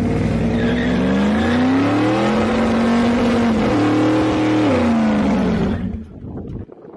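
A truck engine revs loudly.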